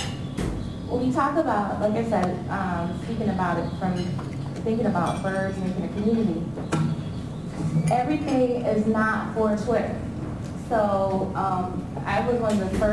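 A woman speaks calmly through a microphone in an echoing room.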